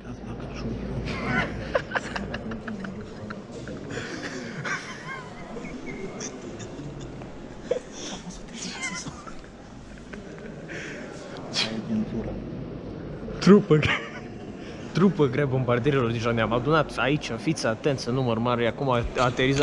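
A young man talks close up with animation.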